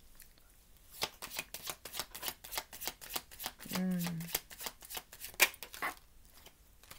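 Cards shuffle and snap in a woman's hands.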